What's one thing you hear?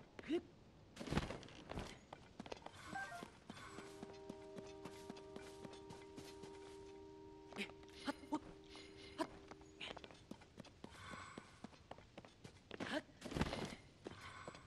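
A game character's hands and boots scrape and thump on rock while climbing.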